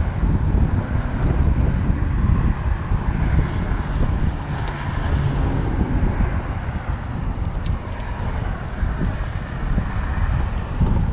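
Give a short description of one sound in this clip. Bicycle tyres hum on a concrete road.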